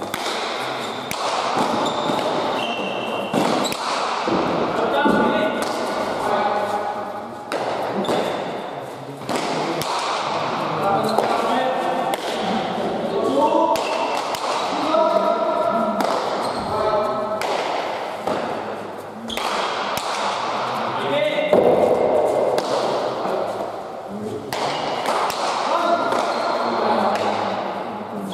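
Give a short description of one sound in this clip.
A ball smacks hard against walls and is struck by hand, echoing through a large hall.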